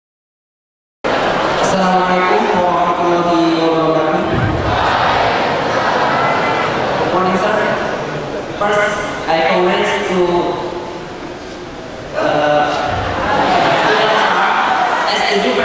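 A large crowd of young people murmurs in the background.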